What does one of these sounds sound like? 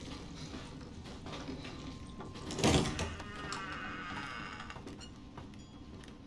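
Footsteps thud slowly on creaking wooden floorboards.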